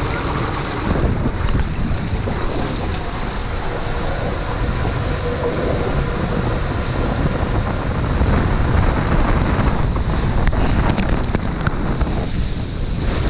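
Water rushes and splashes down a slide.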